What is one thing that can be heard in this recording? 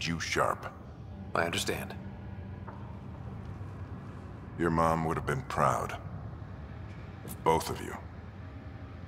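A middle-aged man speaks calmly and warmly, close by.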